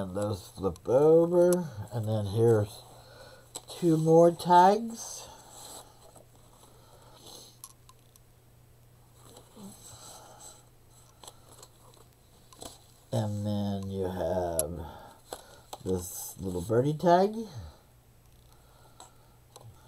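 Paper rustles and crinkles softly as pages and tags are handled.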